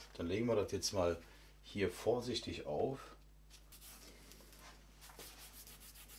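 Paper rustles and slides on a board.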